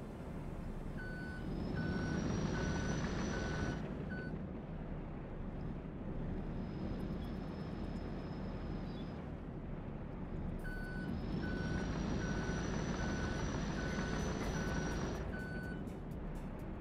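A reversing alarm beeps in a steady rhythm.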